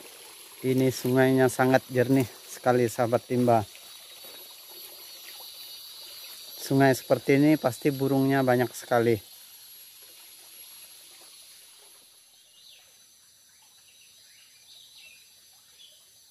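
A shallow stream trickles gently over stones.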